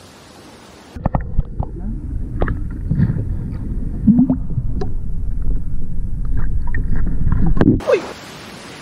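Water churns and bubbles underwater around a swimmer.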